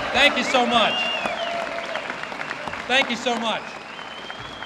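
A man speaks loudly into a microphone over the clapping.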